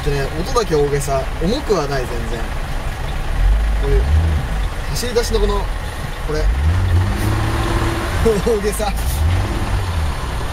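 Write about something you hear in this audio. A man talks calmly and laughs close by.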